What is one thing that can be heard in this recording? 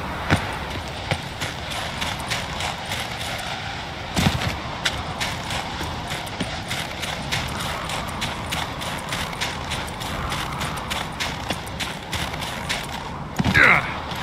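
Footsteps crunch steadily through snow.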